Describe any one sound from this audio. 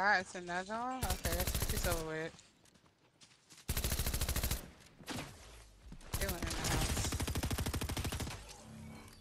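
Rapid gunfire rattles in several bursts.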